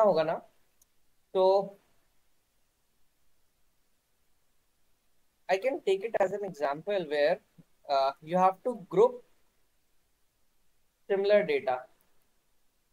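A young man speaks calmly through an online call, in short bursts with pauses.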